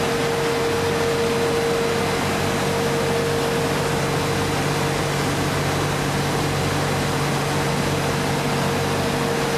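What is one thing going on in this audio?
A machine hums and whirs steadily with a droning tone.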